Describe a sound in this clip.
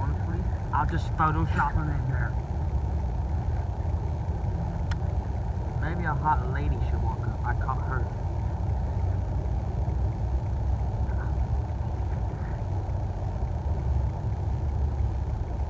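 Wind rumbles steadily across the open air.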